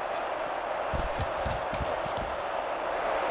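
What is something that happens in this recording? Football players collide with heavy thuds in a tackle.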